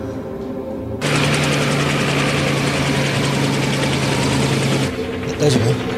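A helicopter's rotor and engine drone steadily.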